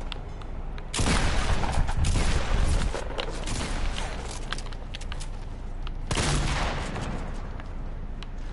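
Wooden walls are built quickly with clattering thuds and cracks.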